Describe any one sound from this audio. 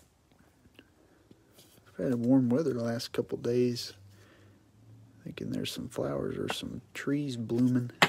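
A plastic card sleeve crinkles and rustles.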